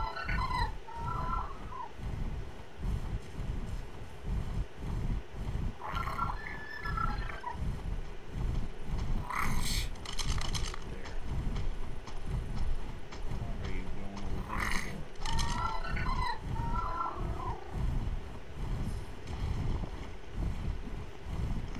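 Large wings flap with rhythmic low whooshing thumps.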